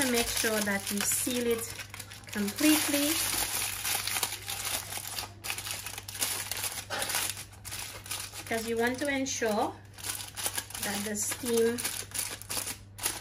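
Aluminium foil crinkles and rustles as hands fold and press it.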